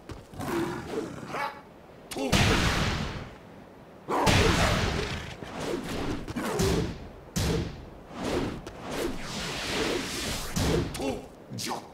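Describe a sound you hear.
A sword swishes and clangs against a fighter.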